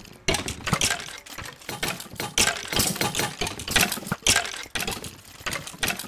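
A sword strikes with short sharp hits.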